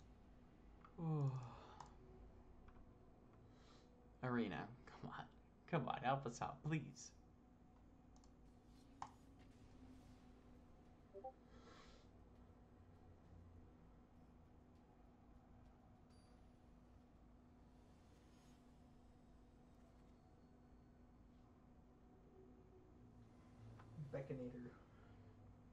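A young man speaks casually into a close microphone, in short bursts.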